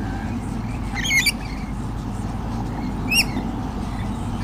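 A bird calls from its nest with short chirps.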